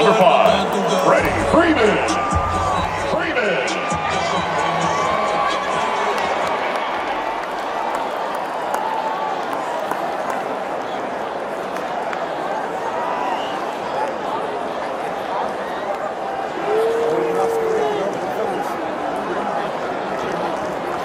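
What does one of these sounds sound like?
A large crowd murmurs and cheers in a wide open stadium.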